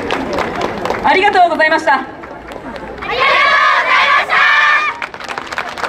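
A group of young women shout a chant together, loud and outdoors.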